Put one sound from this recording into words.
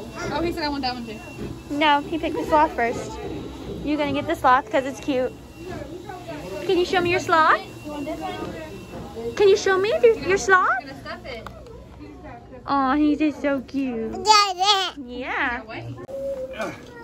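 A woman talks brightly and playfully to a toddler, close by.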